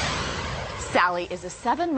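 A young woman speaks brightly close to a microphone.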